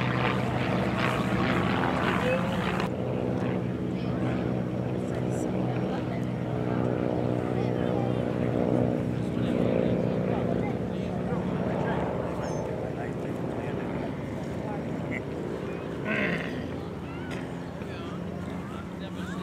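Small propeller aircraft engines drone steadily overhead.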